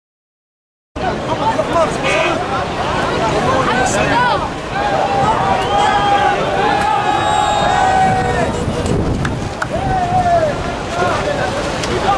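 A crowd of men shouts and chants outdoors.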